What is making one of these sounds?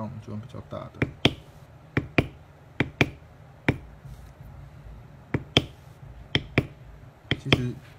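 A mallet taps a metal stamping tool into leather with sharp knocks.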